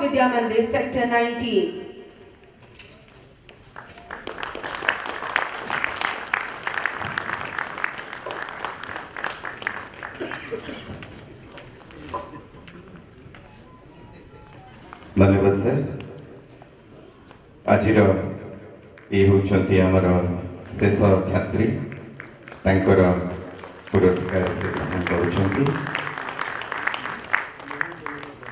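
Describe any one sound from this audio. A woman speaks over a loudspeaker, announcing.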